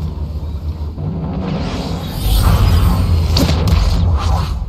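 A ship's descent pod roars and whooshes as it drops through the clouds.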